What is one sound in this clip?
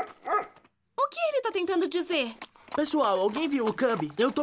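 A young girl speaks with animation.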